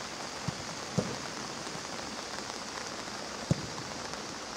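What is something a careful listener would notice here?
A football is kicked hard with a dull thump.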